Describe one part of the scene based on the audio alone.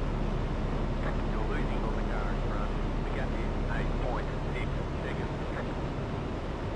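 A man speaks into a headset microphone.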